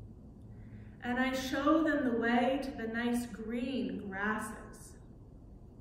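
A woman speaks calmly nearby in an echoing room.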